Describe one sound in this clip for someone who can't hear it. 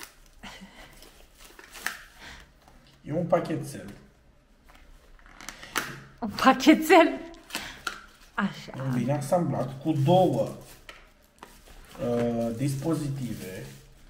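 Paper crinkles and rustles as a small box is opened.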